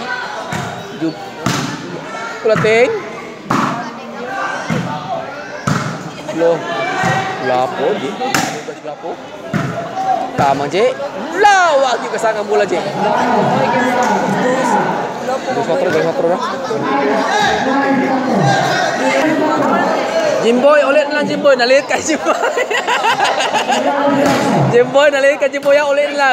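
A crowd of spectators chatters and shouts around the court.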